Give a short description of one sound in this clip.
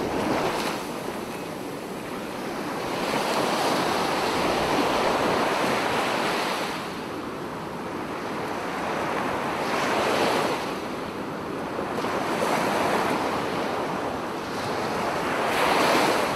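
Small waves wash and lap close by, rising and falling in surges.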